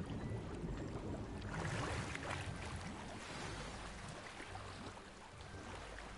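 Water churns and laps steadily around a swimmer.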